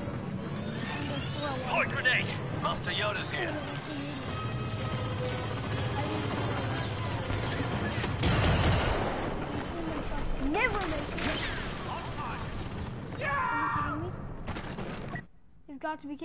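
Laser blasters fire in rapid bursts amid a loud battle.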